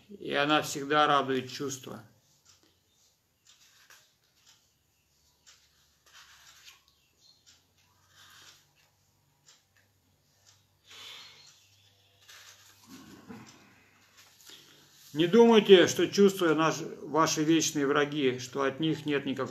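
An elderly man reads aloud close to a microphone, with pauses.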